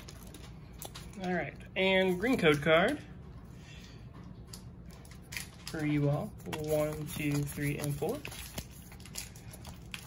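Trading cards rub and slide against each other as they are flipped through.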